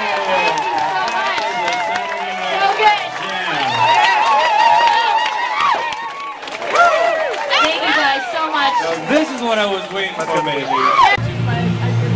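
A crowd sings and cheers loudly.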